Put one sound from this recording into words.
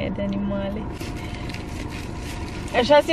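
Paper rustles in a woman's hands.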